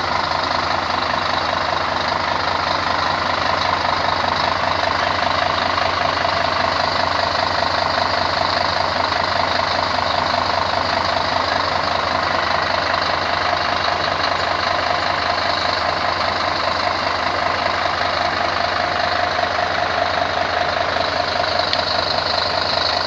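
A bus engine idles with a steady, loud rumble close by.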